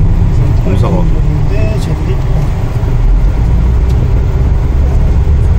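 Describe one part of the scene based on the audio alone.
Wind buffets loudly against the vehicle.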